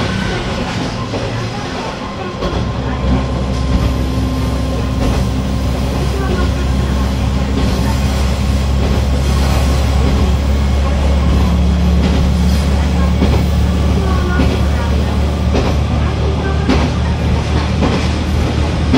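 Train wheels click and rumble over the rail joints.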